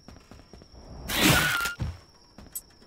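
A melee weapon strikes a creature with a heavy whoosh and thud.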